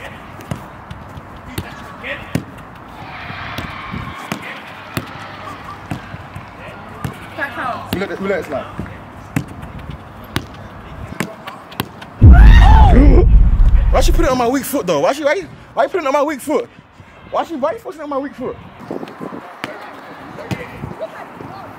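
A football is kicked on artificial turf.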